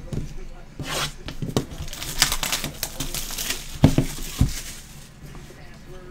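Plastic shrink wrap crinkles and tears.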